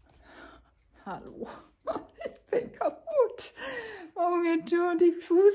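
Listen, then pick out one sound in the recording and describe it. An elderly woman speaks cheerfully close by.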